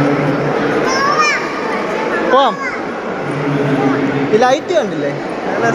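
A young child squeals and babbles nearby.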